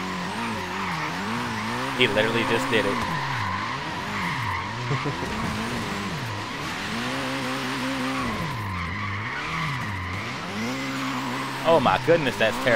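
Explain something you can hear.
Tyres squeal steadily as a car slides.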